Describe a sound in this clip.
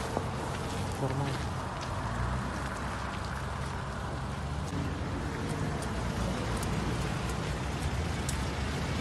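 A man speaks firmly nearby, outdoors.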